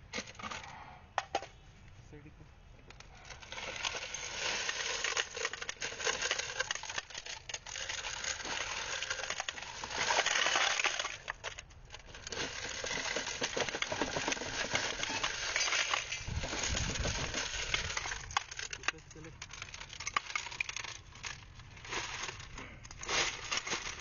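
Metal cartridges clink and rattle as they pour onto a pile.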